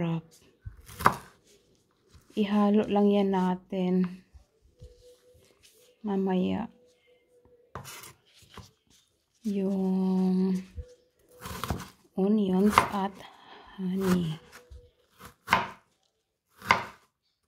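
A knife chops against a wooden cutting board.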